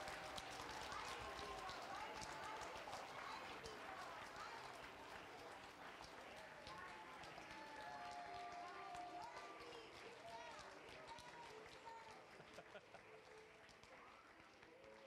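Children clap their hands.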